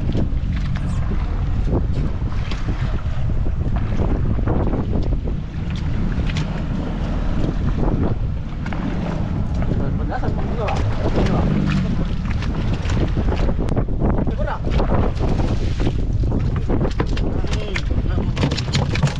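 Waves slap against a small boat's hull.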